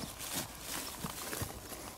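A calf tears and munches grass.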